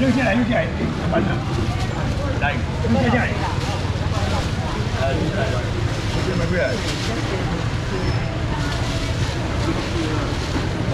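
Many people chatter in a busy, echoing indoor space.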